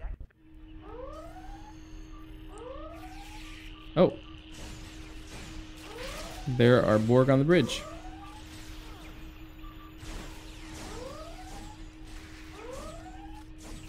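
Energy weapons fire in short, rising zaps.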